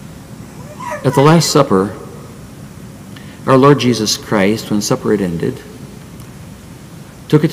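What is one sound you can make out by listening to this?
An elderly man speaks deliberately into a microphone, with pauses.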